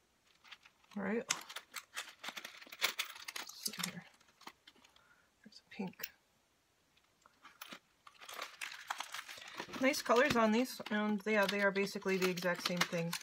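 Stiff paper pages rustle and tap as a handmade book is handled.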